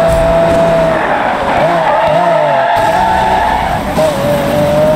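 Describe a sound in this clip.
Tyres screech as a car drifts through a bend.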